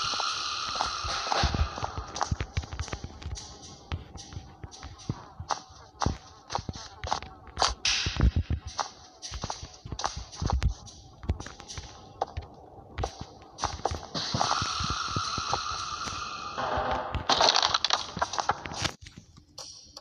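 Footsteps thud on creaky wooden floorboards.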